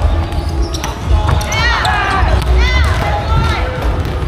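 Sneakers squeak on the hardwood floor.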